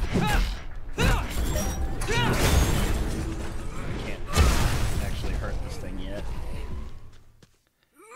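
Energy blades zap and clash in a fight.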